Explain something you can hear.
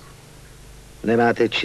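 A man speaks in a low voice, close by.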